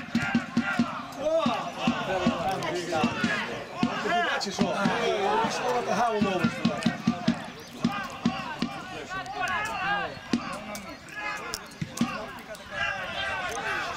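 Men shout and call out on an open pitch.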